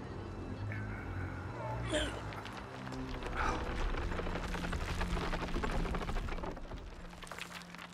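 An older man speaks with effort.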